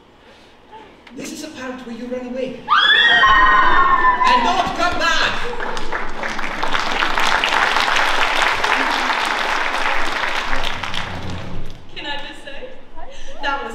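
A young man speaks loudly on stage in a large echoing hall.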